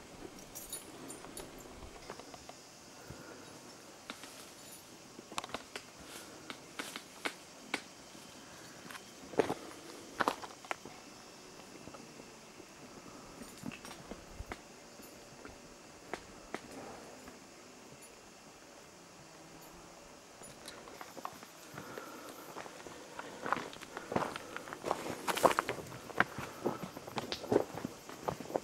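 Footsteps crunch and scrape on a rocky trail outdoors.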